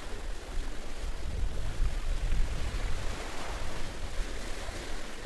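Waves wash gently onto a beach.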